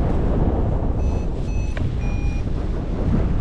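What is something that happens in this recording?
A flight instrument beeps a few short high tones.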